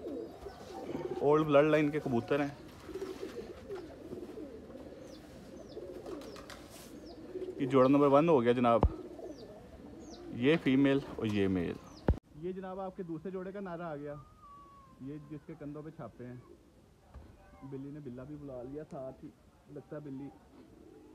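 A pigeon coos in deep, throaty bursts close by.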